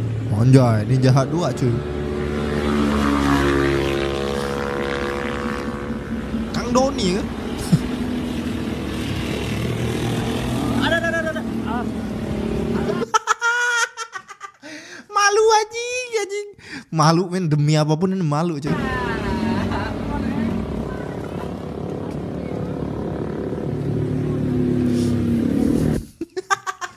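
Motorcycle engines roar and rev.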